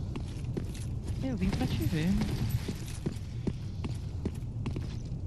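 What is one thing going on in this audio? Armored footsteps clank on stone.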